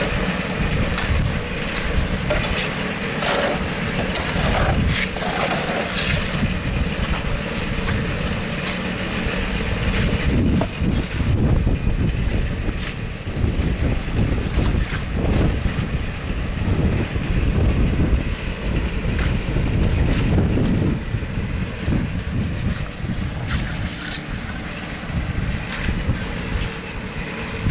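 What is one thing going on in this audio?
A shovel scrapes through wet concrete.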